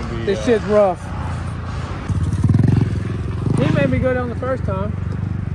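A four-stroke dirt bike engine runs and revs.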